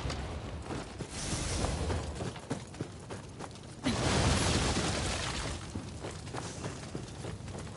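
Footsteps run across a wooden floor.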